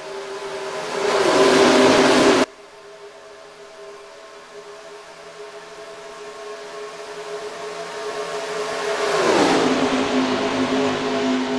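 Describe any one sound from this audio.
A pack of race cars roars past close by, the engine pitch dropping as they pass.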